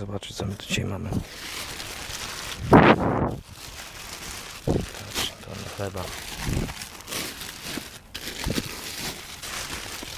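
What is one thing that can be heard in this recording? Plastic bags rustle and crinkle as they are handled close by.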